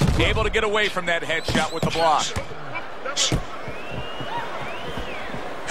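Gloved punches land with dull thuds.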